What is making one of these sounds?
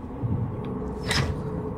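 A metal lever clanks as it is pulled down.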